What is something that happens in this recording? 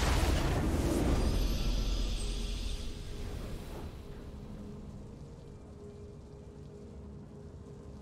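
A victory fanfare swells and fades.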